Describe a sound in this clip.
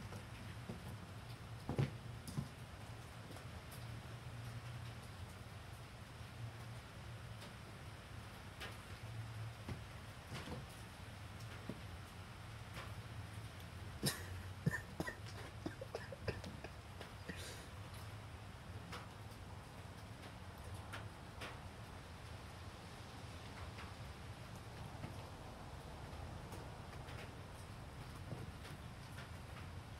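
A cat's paws patter and scuff on wooden boards.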